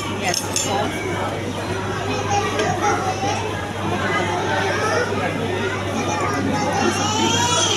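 Many people chatter all around in a busy room.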